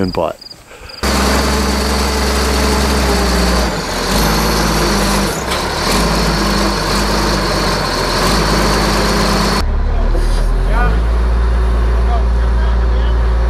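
A heavy loader's diesel engine rumbles loudly and steadily nearby.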